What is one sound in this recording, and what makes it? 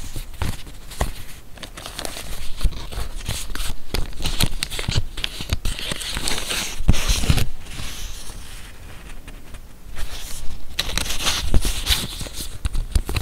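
Paper tabs tap and click against each other.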